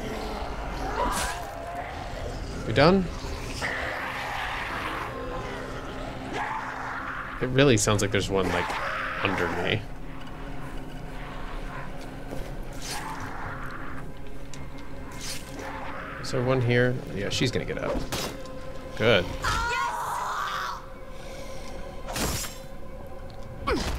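A blade slashes into flesh with wet, heavy thuds.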